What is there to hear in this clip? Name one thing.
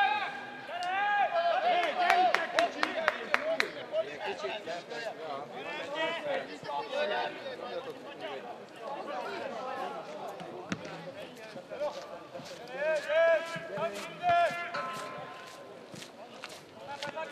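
Young men shout to each other across an open football pitch.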